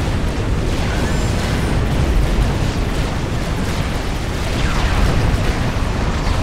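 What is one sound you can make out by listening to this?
Ship guns boom and shells explode in a continuous battle.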